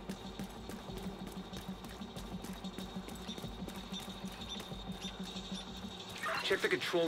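Quick footsteps run steadily on hard ground.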